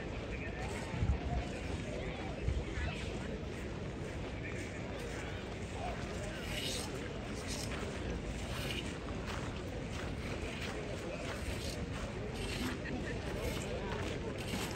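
Footsteps crunch on gravel as a group marches past.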